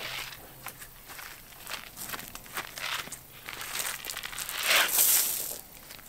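A child's footsteps swish through grass.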